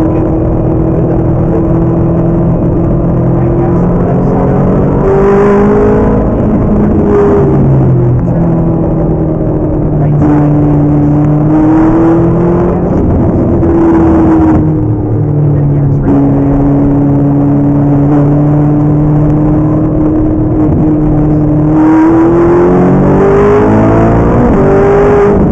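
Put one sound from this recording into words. A sports car engine roars loudly from inside the cabin, revving up and down through the gears.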